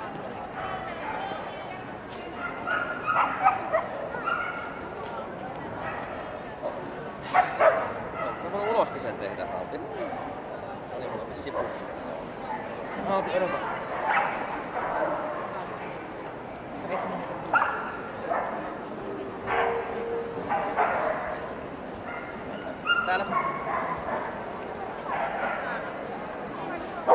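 A crowd of adults chatters in a large echoing hall.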